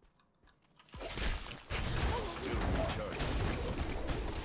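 Weapons clash and spells burst loudly in a fierce fight.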